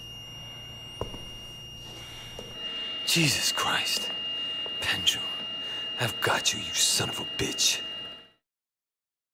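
An electronic hospital monitor gives a steady high tone.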